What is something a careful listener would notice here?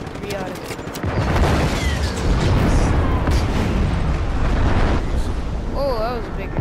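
Large explosions boom and rumble loudly.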